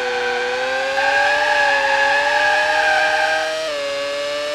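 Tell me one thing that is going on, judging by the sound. Tyres screech through a corner.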